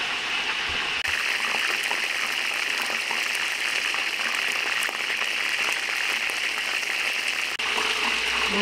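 Oil sizzles and crackles as food fries in a pot.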